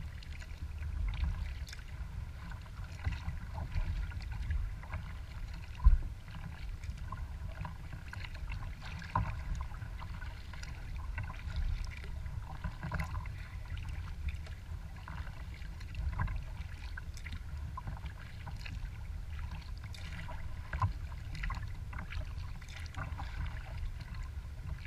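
Wind rumbles across the open water.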